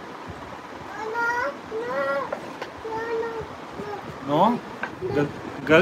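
A young child babbles and chatters nearby.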